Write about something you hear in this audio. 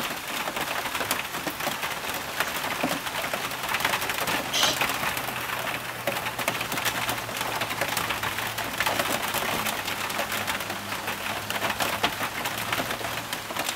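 Birds flap their wings noisily.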